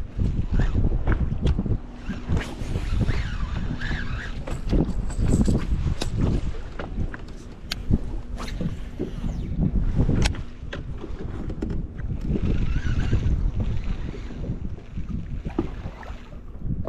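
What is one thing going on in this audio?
A fishing reel clicks and whirs.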